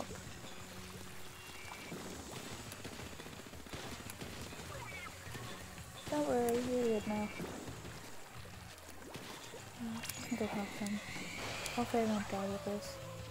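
Video game ink sprays and splatters in quick bursts.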